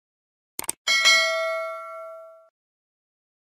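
A small bell chimes brightly and rings out.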